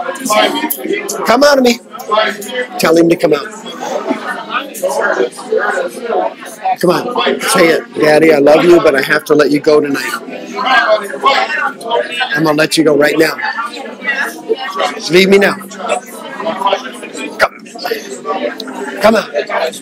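Several young adults chatter loudly over one another close by.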